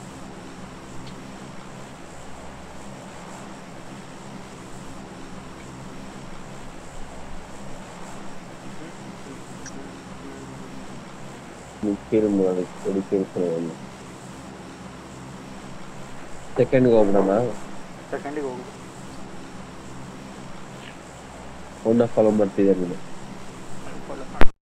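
An airplane engine drones steadily.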